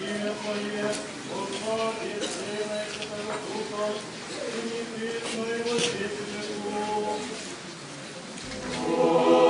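Men chant slowly.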